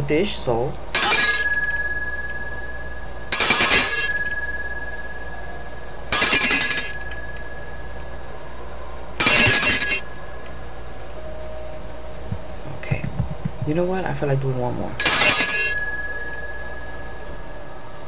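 A small hand bell rings sharply several times, each ring fading away.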